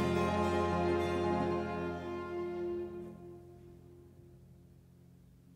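A choir's last chord rings out and fades in a large hall.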